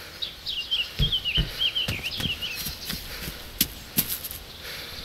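Footsteps thud on wooden boards and gravel.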